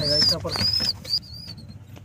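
A pigeon flaps its wings.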